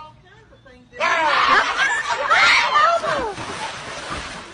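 A young person screams loudly.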